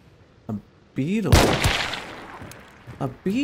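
A pistol fires a loud shot that echoes away.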